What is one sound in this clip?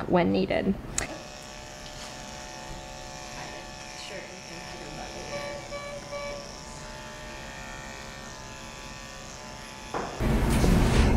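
Electric clippers buzz steadily.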